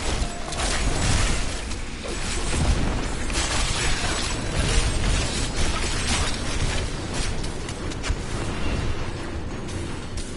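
Heavy blows thud against a large creature.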